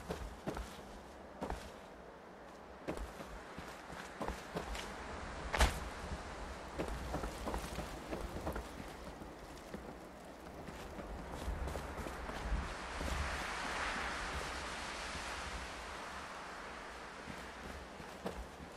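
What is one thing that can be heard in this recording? Footsteps thud on wooden and concrete floors.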